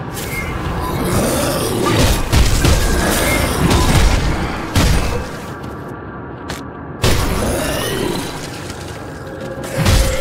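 Magic blasts crackle and crash loudly in a fight.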